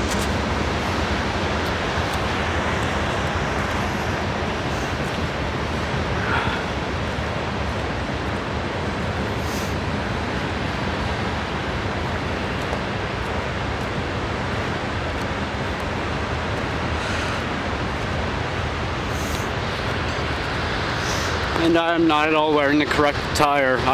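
A car rumbles steadily along a rough road.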